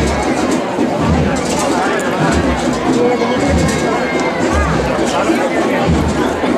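A crowd murmurs and chatters close by.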